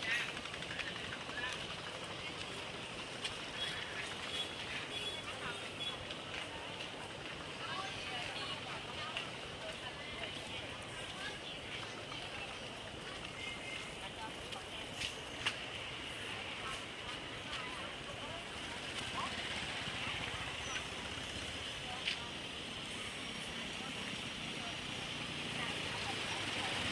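Adults chatter in a busy crowd outdoors.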